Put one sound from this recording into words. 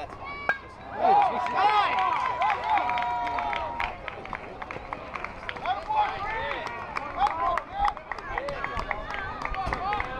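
Young players shout and cheer excitedly.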